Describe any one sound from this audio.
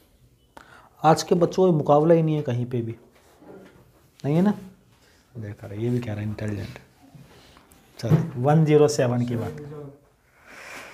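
A man explains calmly and clearly, close to a microphone.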